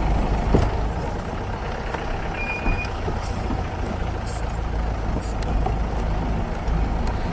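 A vehicle rattles and clunks over bumps.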